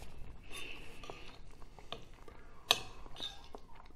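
A spoon clinks against a bowl.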